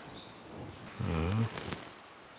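A man speaks in a low voice, close by.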